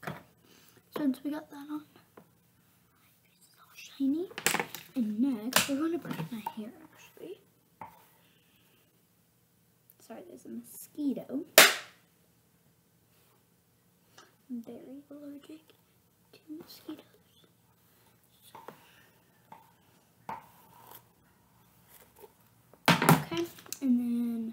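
A young girl talks close to a microphone, in short bursts with pauses.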